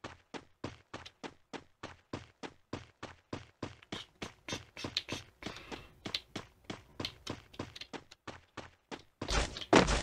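Quick footsteps run steadily on hard ground.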